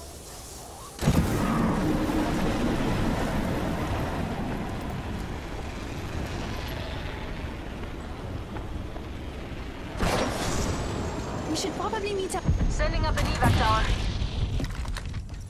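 Wind rushes loudly past a character diving through the air.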